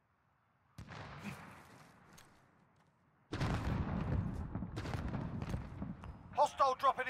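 A rifle fires loud single shots that boom and echo away.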